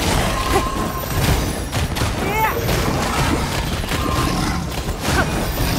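Fiery magical blasts boom and crackle.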